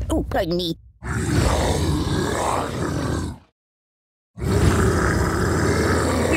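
A cartoon dinosaur roars.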